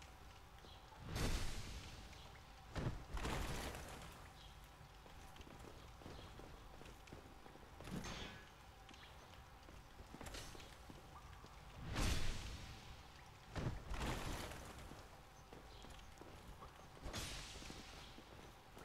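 Heavy sword swings whoosh through the air.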